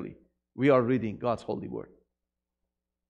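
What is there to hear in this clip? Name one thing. A middle-aged man speaks through a microphone.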